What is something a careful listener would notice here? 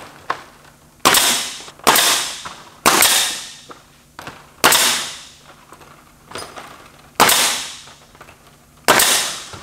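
A pneumatic nail gun fires with sharp hissing bangs.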